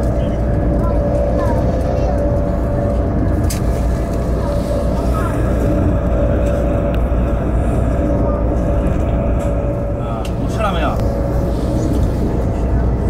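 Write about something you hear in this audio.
A high-speed train rumbles along the track, heard from inside the carriage.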